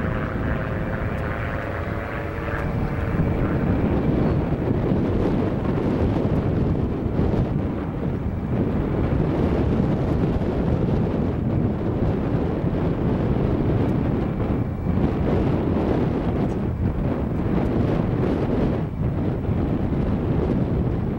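Wind blows steadily and rumbles outdoors.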